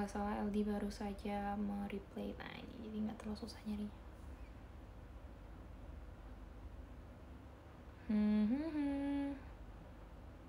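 A young woman sings softly, close to the microphone.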